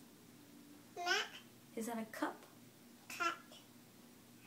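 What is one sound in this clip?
A baby girl babbles and squeals.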